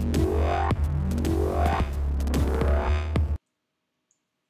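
Upbeat video game music plays loudly.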